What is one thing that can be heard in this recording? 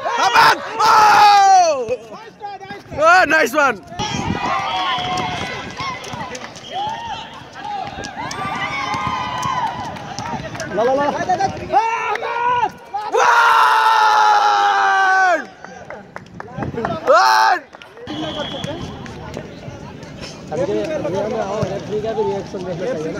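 Men shout and call out loudly during a ball game outdoors.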